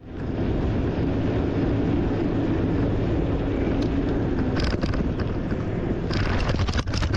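Bicycle tyres roll over a paved path.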